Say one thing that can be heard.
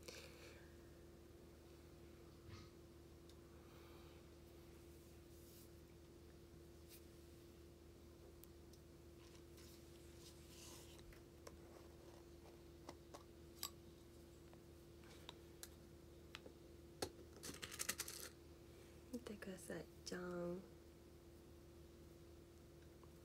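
Fingernails tap and click lightly.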